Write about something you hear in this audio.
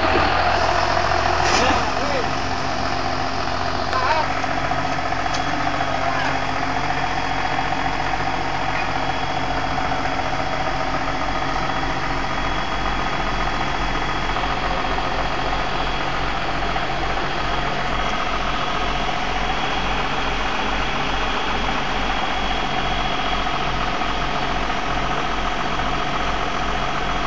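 Tractor tyres squelch through deep mud.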